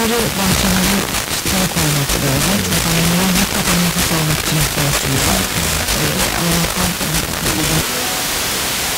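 A man's voice speaks faintly through crackling radio static.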